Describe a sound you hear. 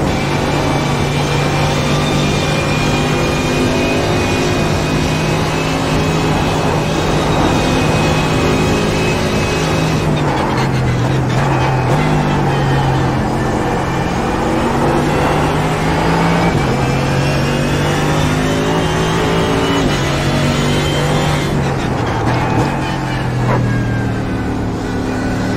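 A racing car engine roars loudly at high revs, shifting gears as it speeds up and slows down.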